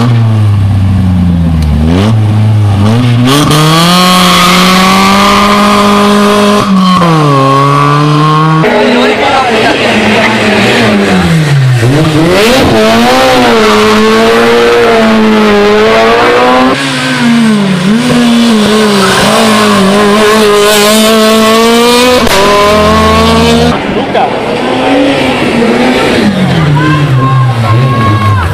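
A rally car engine revs hard and roars past, rising and falling in pitch as it shifts gears.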